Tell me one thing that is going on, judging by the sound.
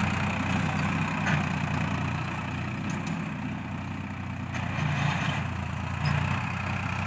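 A tractor engine chugs steadily at a distance outdoors.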